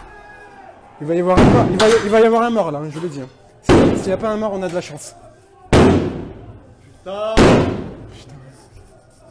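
Men shout angrily close by.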